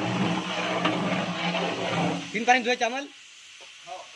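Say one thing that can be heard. A metal paddle scrapes and stirs inside a large pot.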